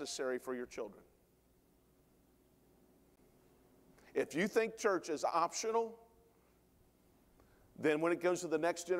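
A middle-aged man preaches with animation through a microphone, pausing between phrases.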